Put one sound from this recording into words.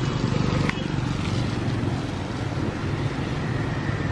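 A motorbike drives past on a wet street.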